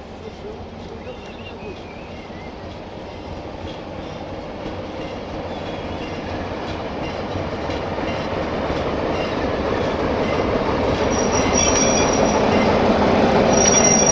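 A diesel locomotive rumbles closer, growing steadily louder.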